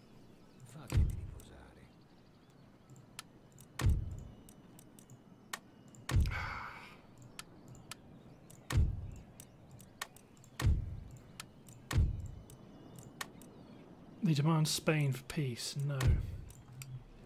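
Soft thuds and clicks sound as game menu windows open and close.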